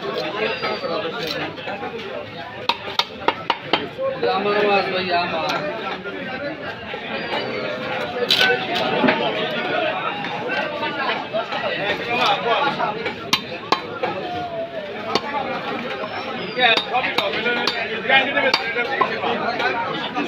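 A knife slices through raw fish with wet squelching.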